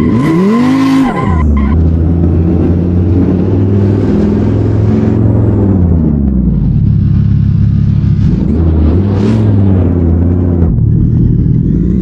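Tyres screech as a car skids and drifts.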